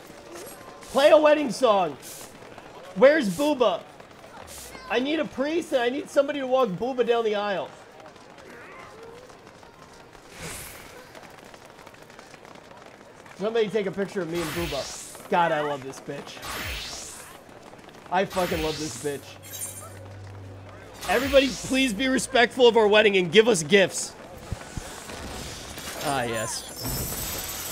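A young man talks with animation close to a microphone, in bursts with pauses.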